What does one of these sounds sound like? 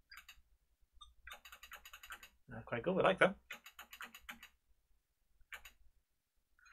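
Short electronic blips tick in quick succession.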